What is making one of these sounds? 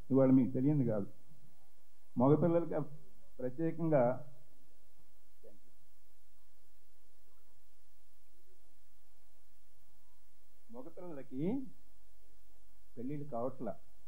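A middle-aged man speaks into a microphone in short bursts, heard through a loudspeaker.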